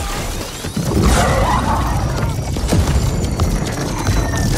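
A laser beam blasts with a loud roar.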